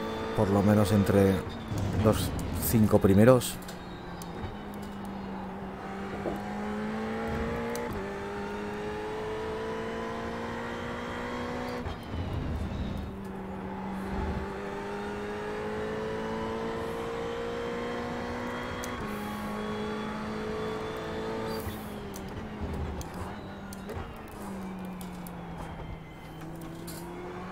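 A race car engine drones and revs up and down through gear changes.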